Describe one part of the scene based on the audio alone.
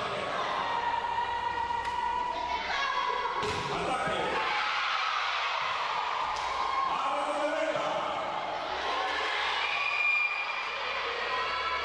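Players shout to each other in a large echoing hall.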